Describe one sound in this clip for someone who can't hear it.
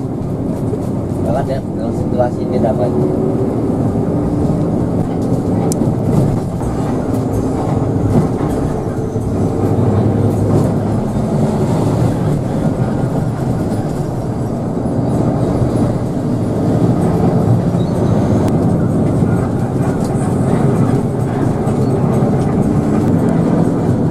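Tyres roll on a highway road.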